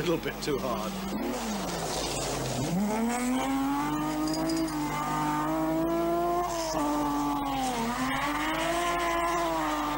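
A rally car engine revs hard, rising and falling in pitch.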